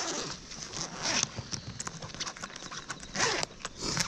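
A zipper is pulled open.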